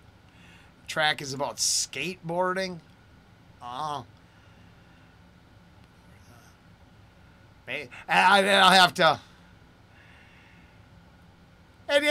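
A middle-aged man talks with animation into a close microphone, with pauses.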